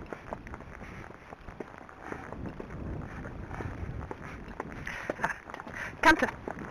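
A horse's hooves thud on a grassy path at a steady walk.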